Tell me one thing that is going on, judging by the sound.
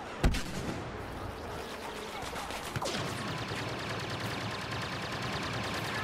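Laser blasters fire in rapid bursts nearby.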